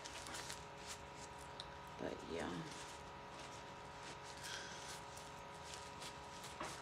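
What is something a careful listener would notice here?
A woman speaks quietly and calmly close by.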